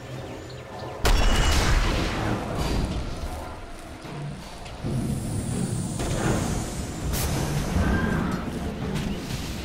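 Fiery spell blasts burst and crackle in a game battle.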